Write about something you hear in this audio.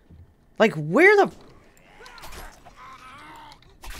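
A zombie growls close by.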